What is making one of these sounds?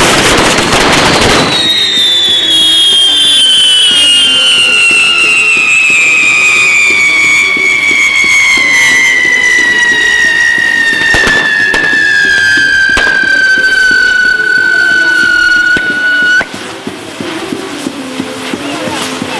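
Fireworks hiss and crackle loudly.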